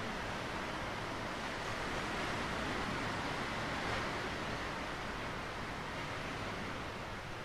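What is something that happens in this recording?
Waves wash gently onto a rocky shore.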